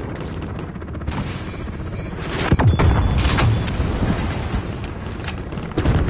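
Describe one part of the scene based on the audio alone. A helicopter's rotor drones overhead.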